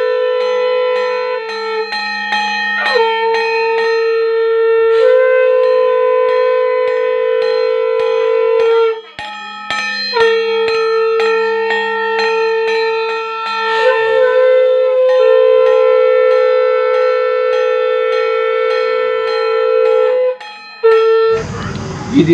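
A reed pipe plays a loud, droning melody.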